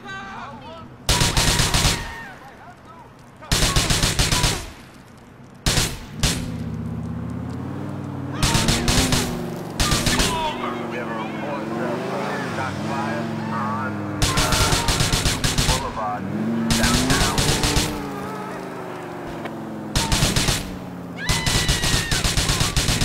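A car engine revs and roars as it speeds along.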